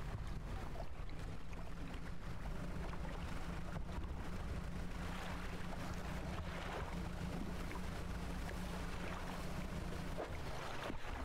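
A small boat engine hums steadily.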